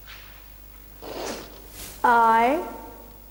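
A middle-aged woman speaks loudly and clearly, drawing out a word as a teacher would.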